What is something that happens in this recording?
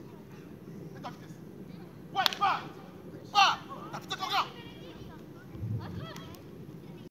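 Young children shout and call out excitedly outdoors.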